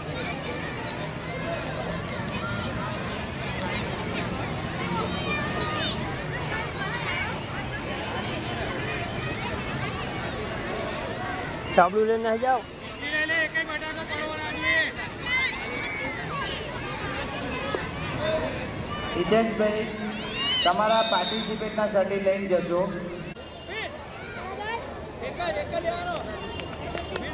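A crowd of children chatters and calls out outdoors.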